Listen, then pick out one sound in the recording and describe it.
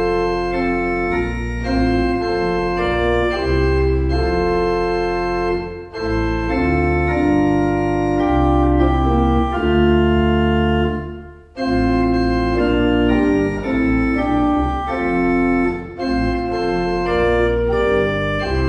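A pipe organ plays slow, sustained chords.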